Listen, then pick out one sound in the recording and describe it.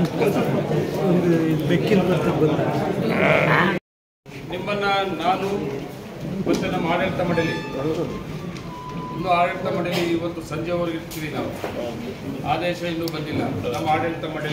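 A middle-aged man speaks steadily into microphones.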